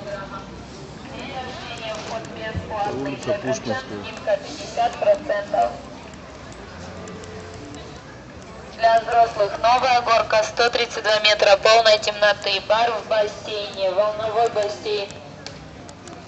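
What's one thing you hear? People chatter nearby on a busy outdoor walkway.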